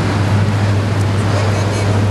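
A woman talks on a phone close by.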